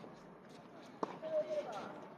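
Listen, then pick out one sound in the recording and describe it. A tennis ball is struck sharply with a racket outdoors.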